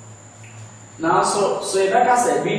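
A man speaks clearly and calmly close to a microphone.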